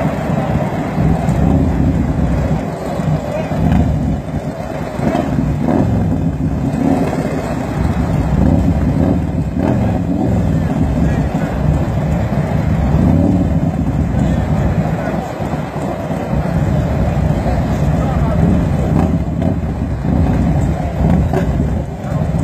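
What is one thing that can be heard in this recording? Motorcycle engines idle and rev loudly nearby.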